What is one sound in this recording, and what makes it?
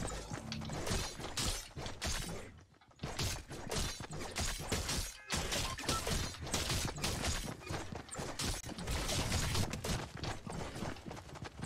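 Game pickaxes clang and thud in quick hits.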